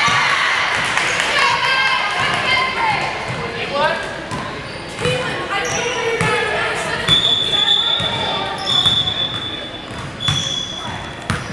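A basketball bounces on a hardwood floor with an echo.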